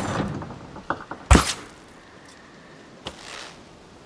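A crossbow fires a bolt with a sharp snap.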